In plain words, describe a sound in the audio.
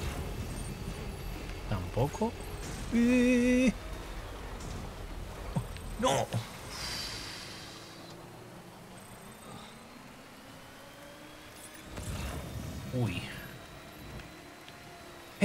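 A truck engine rumbles as the vehicle drives along a road.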